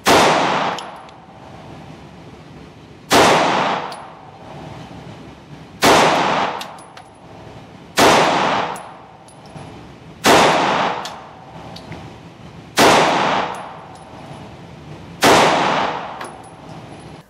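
A pistol fires single loud shots, one every few seconds, echoing off the walls of an indoor range.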